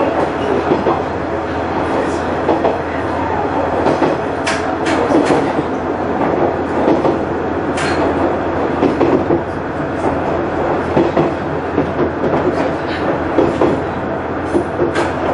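A train engine hums and rumbles steadily.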